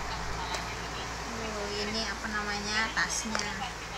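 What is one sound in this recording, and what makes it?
A plastic pouch crinkles as hands handle it.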